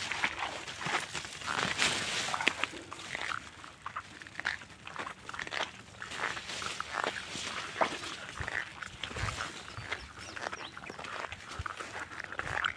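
Dry grass rustles and swishes as something brushes through it.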